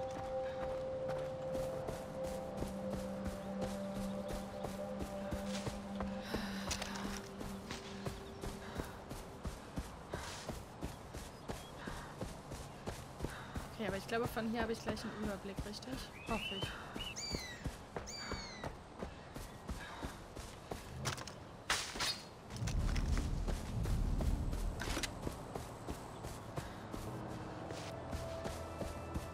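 Footsteps rustle steadily through grass.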